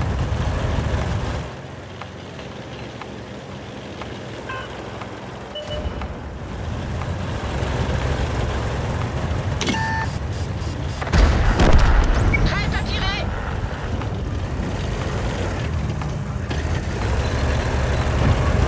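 A tank engine rumbles and clanks as the tank drives.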